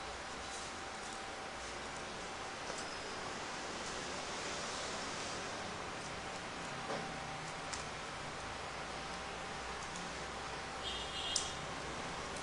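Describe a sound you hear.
Paper pieces rustle and click softly as fingers press them into place.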